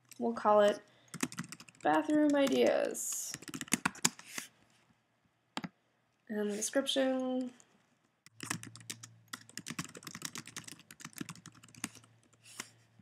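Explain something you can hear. Keys clatter on a computer keyboard in quick bursts.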